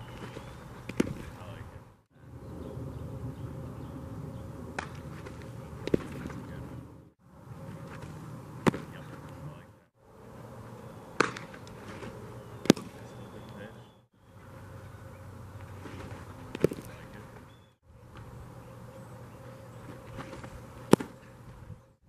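A baseball thumps against a catcher's padded gear.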